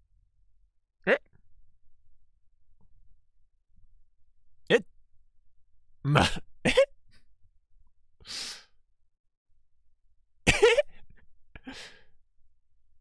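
A young man exclaims in short bursts through a microphone.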